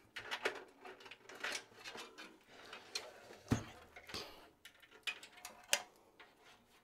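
A metal computer case knocks and bumps as it is tipped over.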